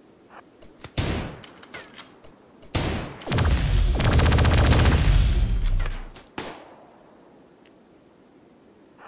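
A gunshot cracks out.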